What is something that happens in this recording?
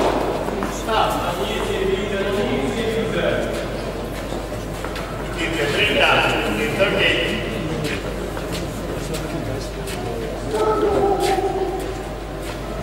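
A young man calls out loudly nearby.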